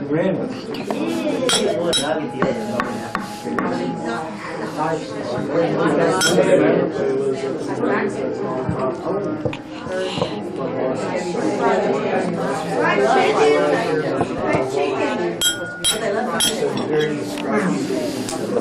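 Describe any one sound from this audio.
A spoon clinks against a table.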